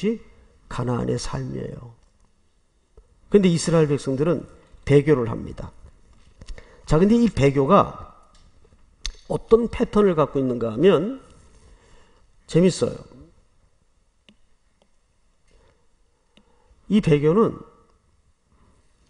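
An older man speaks calmly through a microphone, in short phrases with pauses.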